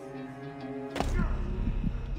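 A body lands with a heavy thud on dirt.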